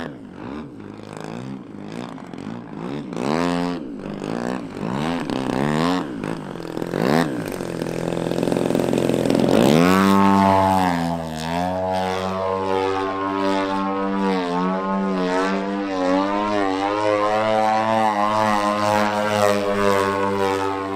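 A model airplane engine whines loudly, rising and falling in pitch as it passes and climbs.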